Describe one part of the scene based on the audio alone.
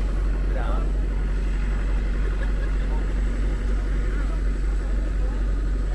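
A bus engine rumbles as the bus drives past.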